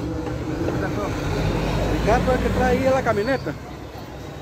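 A bus engine rumbles as the bus drives off.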